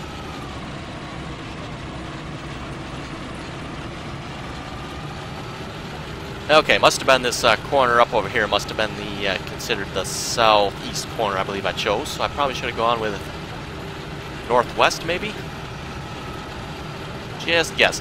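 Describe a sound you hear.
A harvester engine hums steadily.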